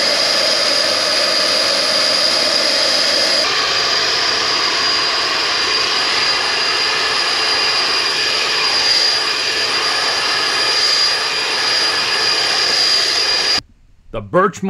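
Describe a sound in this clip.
A sprayer engine whines steadily and loudly close by.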